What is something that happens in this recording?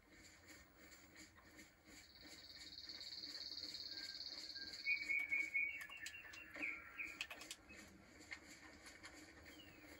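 Footsteps crunch through dry leaves and grass.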